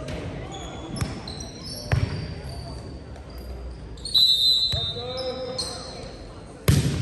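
A volleyball thuds as it is hit.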